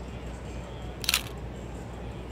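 A phone makes a single sharp shutter click close by.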